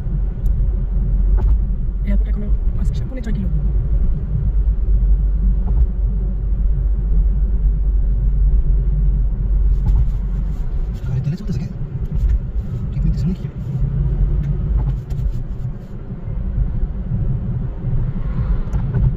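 A car drives at speed, with a low road rumble heard from inside the car.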